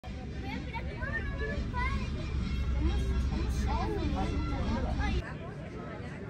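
Children chatter and call out excitedly close by.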